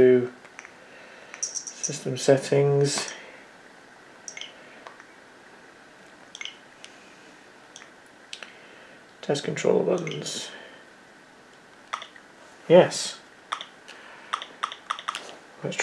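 Fingers tap lightly on a touchscreen.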